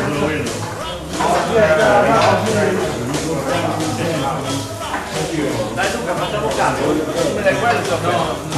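Several men chat and talk over each other nearby in a room.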